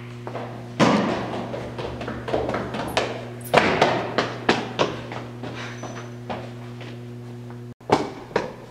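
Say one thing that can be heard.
Footsteps clatter quickly down echoing stairs.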